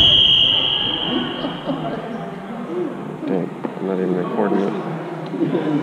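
Children shout and call out in an echoing hall.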